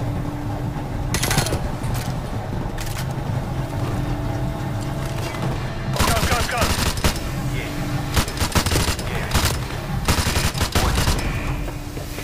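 Gunshots fire in loud, rapid bursts.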